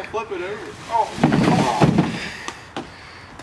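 A canoe is flipped over and thuds onto leaf-covered ground.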